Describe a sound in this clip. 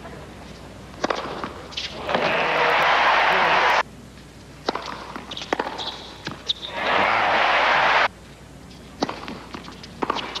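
A tennis ball is struck back and forth with sharp pocks of the racket.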